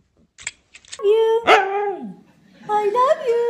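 A dog howls and yowls in a talking way.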